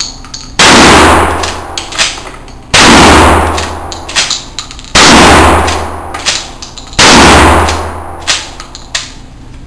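A rifle fires single loud shots that boom and echo in a hard room.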